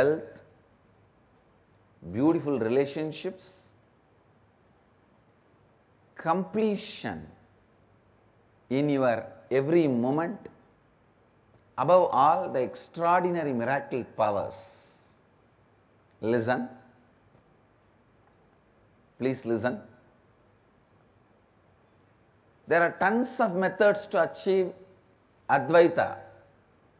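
A man speaks calmly and expressively in short phrases, with pauses between them.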